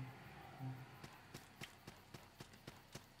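Footsteps tap steadily on stone steps.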